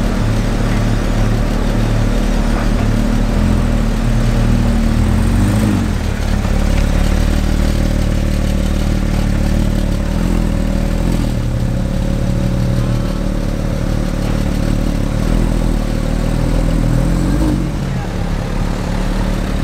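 A sports car engine idles with a deep rumble and revs up briefly now and then.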